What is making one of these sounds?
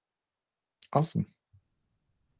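A man speaks briefly and calmly over an online call.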